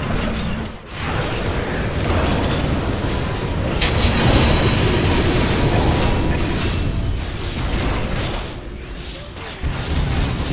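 Game spell effects and fighting sounds crackle and boom.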